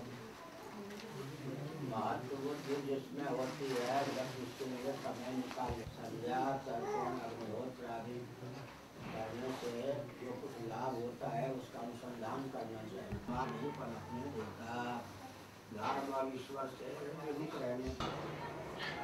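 An elderly man speaks calmly and steadily, close by.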